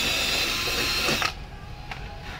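An electric drill whirs briefly.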